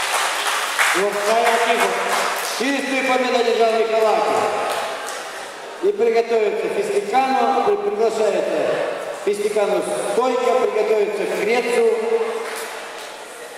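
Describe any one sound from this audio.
A man calls out loudly, echoing through the hall.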